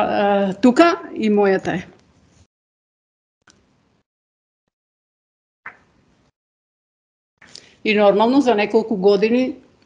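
A woman speaks calmly into a microphone, heard through an online call.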